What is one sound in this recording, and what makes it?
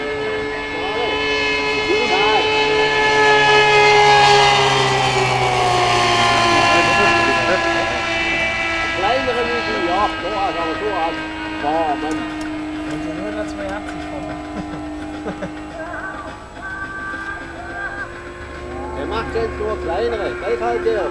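A small propeller plane's engine drones overhead, rising as it swoops past close by and dropping in pitch as it pulls away.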